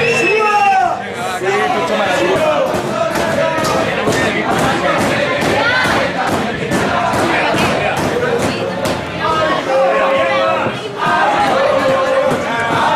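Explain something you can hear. A crowd claps hands in a steady rhythm.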